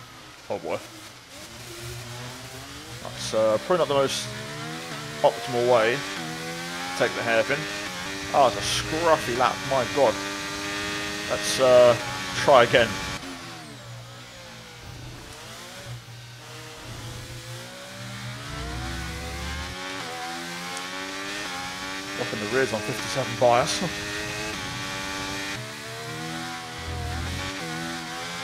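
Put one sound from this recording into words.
A racing car engine whines and revs up and down through gear changes.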